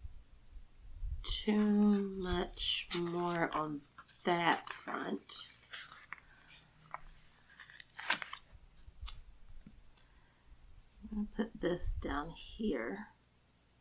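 Sticker sheets rustle as they are handled.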